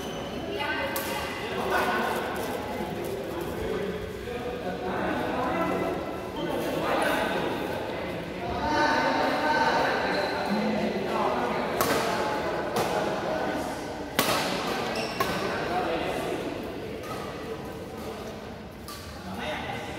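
Rackets hit a shuttlecock in sharp smacks in a large echoing hall.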